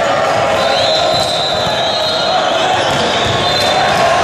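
A volleyball is spiked with a hard smack.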